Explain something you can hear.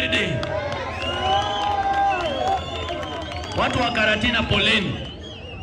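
A man speaks loudly into a microphone, heard through a loudspeaker outdoors.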